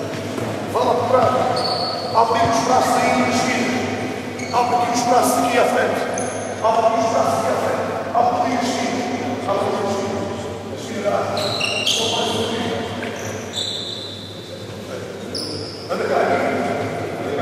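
A man shouts instructions loudly in an echoing hall.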